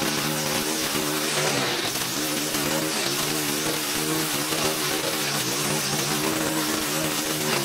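A string trimmer's line whips through tall grass and weeds.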